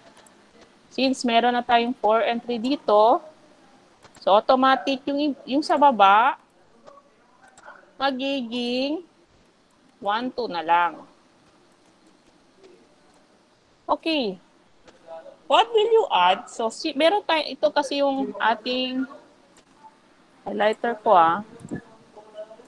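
A woman explains calmly, heard through an online call.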